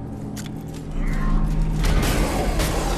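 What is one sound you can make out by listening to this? A fiery blast roars loudly.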